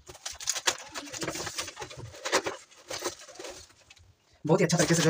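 Cardboard rustles and scrapes as a box is handled.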